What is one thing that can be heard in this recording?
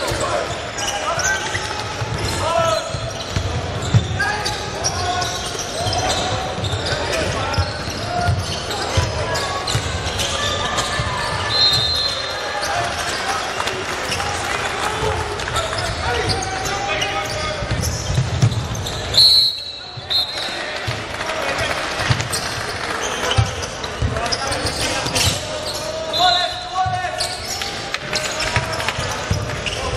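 A basketball bounces on the floor with dull thuds.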